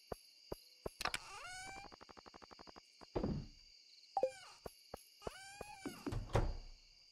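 Game menu sounds chirp and click.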